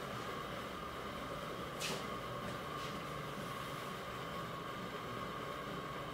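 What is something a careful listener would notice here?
A towel rustles as it is draped over a man's face.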